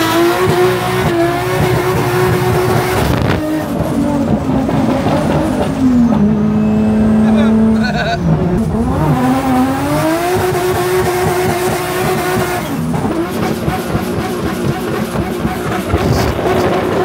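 A car engine hums and revs up and down while driving.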